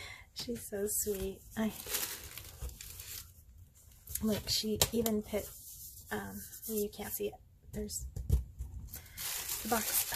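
Tissue paper rustles and crinkles under a hand.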